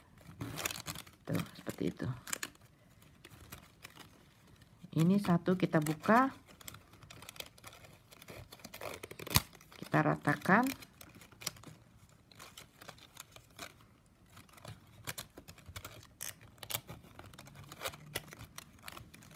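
Stiff plastic strips rustle and click as they are woven by hand.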